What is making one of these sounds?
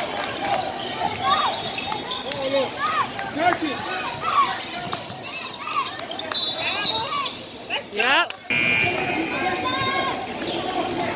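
A crowd murmurs and calls out in an echoing hall.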